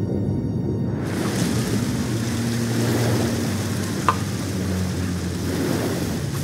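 Water splashes and laps as a swimmer comes up.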